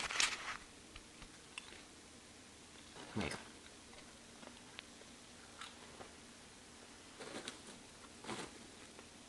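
A young man breathes out sharply close by.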